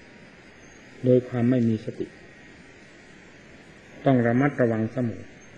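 An elderly man speaks slowly into a microphone, in short phrases.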